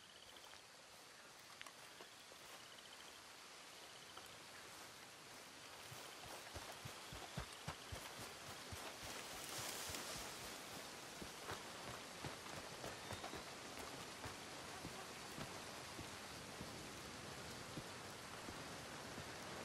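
Footsteps crunch on grass and gravel as someone walks and runs.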